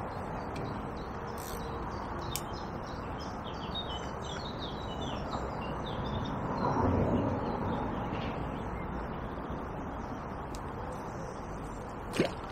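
Soft wind blows outdoors by the water.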